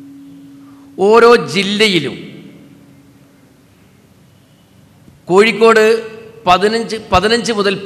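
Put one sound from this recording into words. A man speaks forcefully into a microphone, heard through loudspeakers.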